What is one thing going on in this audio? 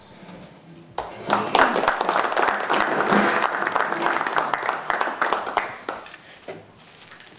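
A small group applauds.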